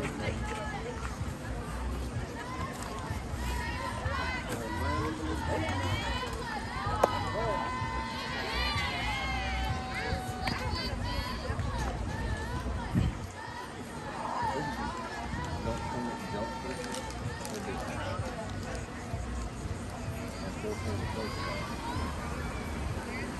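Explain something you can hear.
Young women call out and cheer in the distance, outdoors.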